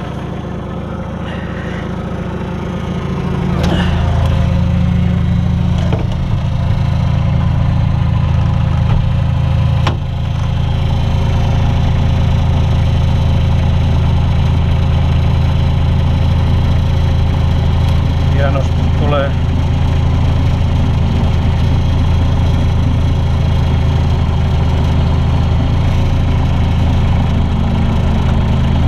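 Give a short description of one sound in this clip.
A diesel engine rumbles steadily close by, growing louder early on.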